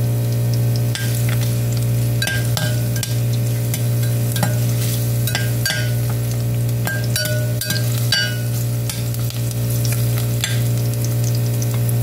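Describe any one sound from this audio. A metal spoon scrapes and clinks against a glass pot.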